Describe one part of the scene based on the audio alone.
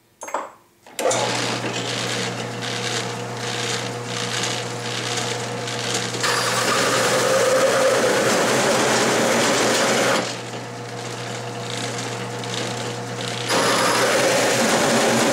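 A drill press hole saw whirs and grinds steadily through steel.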